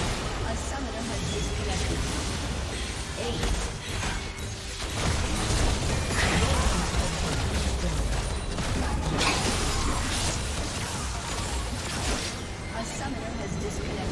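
Game spells blast and crackle in a busy fight.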